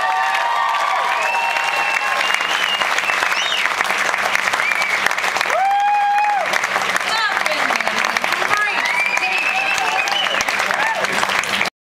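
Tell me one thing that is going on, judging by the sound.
An audience cheers and applauds in a large hall.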